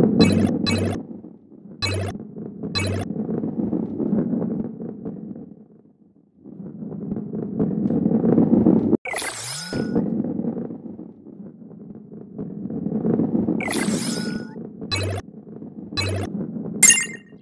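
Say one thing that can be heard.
Coins chime with a bright ping.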